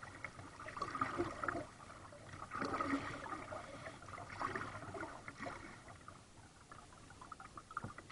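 Water laps softly against a kayak hull.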